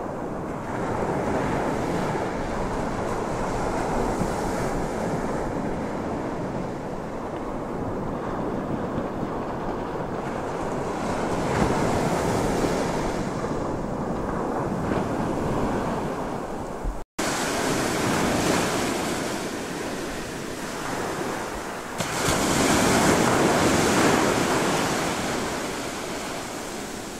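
Ocean waves rush and churn steadily.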